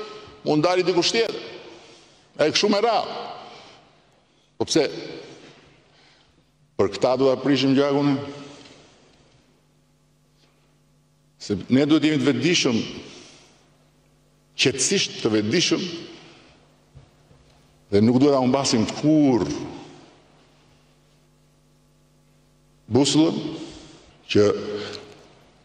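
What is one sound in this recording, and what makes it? An older man speaks with animation into a microphone, in short bursts with pauses.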